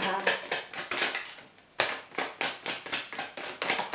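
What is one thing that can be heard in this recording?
A deck of cards is shuffled with quick soft clicks.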